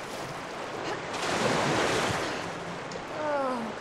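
Water sloshes as someone wades through it.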